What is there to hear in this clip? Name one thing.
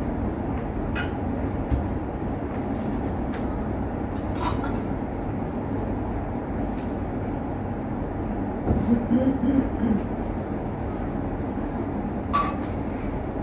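Metal vessels clink softly against a table.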